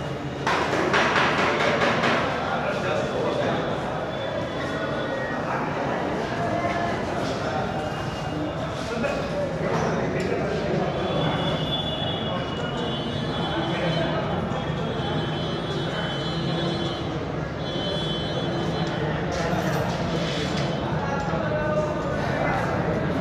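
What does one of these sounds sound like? Several men talk loudly nearby, their voices mixing.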